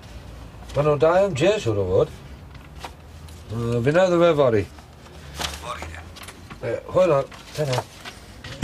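A middle-aged man speaks calmly into a phone up close.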